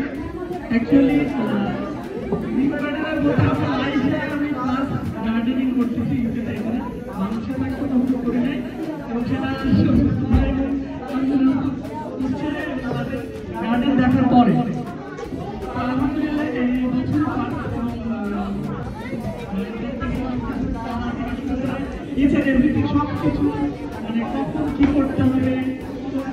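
A young man sings through a microphone and loudspeakers in a large echoing hall.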